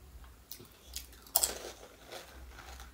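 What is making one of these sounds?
A crisp shell crunches loudly up close as a woman bites it.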